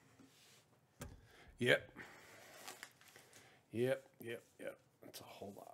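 Card packs are set down and slid on a table.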